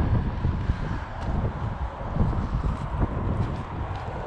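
Footsteps crunch on dry ground and rock.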